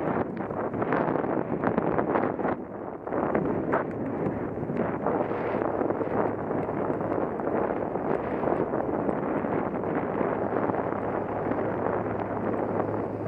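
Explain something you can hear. Wind buffets and rumbles steadily against the microphone outdoors.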